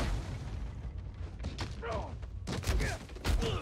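Punches thud during a fistfight.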